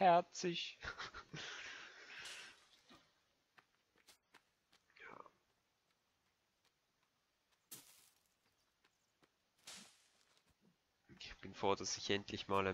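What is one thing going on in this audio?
Footsteps crunch through forest undergrowth.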